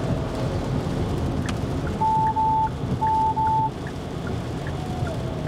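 Windscreen wipers sweep back and forth.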